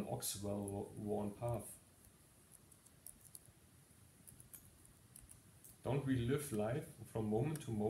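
A man speaks calmly and close by, with a pause.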